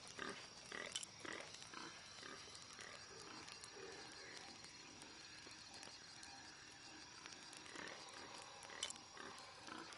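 A soft menu click sounds a few times.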